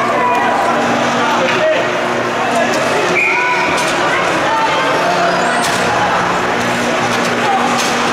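Ice skates scrape and swish across the ice.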